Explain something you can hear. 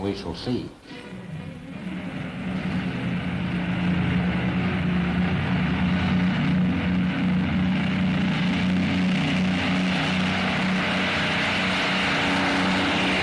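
A propeller aircraft's engines drone, growing louder as it approaches low overhead.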